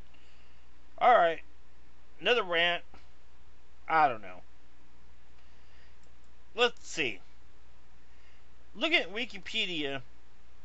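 A middle-aged man speaks calmly in short phrases, close to the microphone, with pauses between them.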